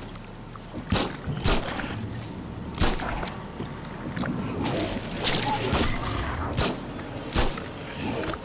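Pistol shots ring out sharply several times.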